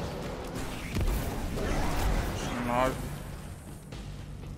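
Game explosions boom.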